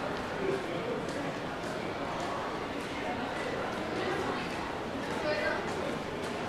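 A crowd of people chatters in a busy street nearby.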